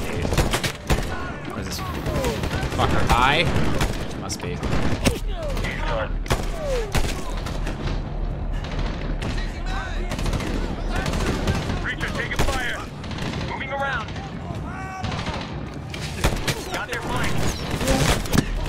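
A rifle fires loud, sharp shots, again and again.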